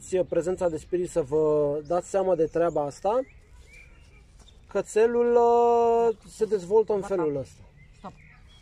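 A woman speaks calmly and firmly nearby, outdoors.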